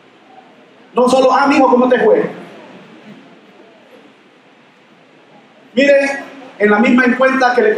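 A man speaks with animation into a microphone over loudspeakers in an echoing hall.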